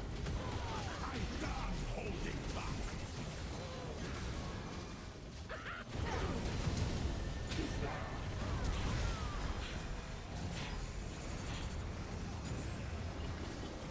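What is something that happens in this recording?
Game spell effects burst and crackle in a fast battle.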